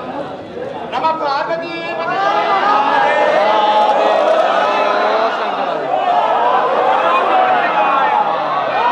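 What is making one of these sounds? A crowd of men and women chants loudly together.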